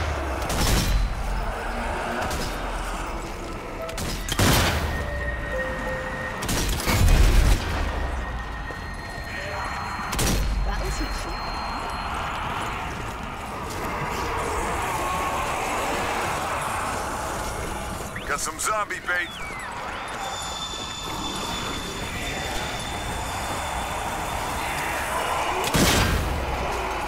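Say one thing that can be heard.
Loud rifle shots boom and echo.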